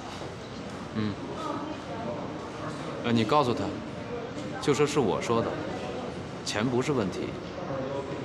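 A man talks calmly into a phone.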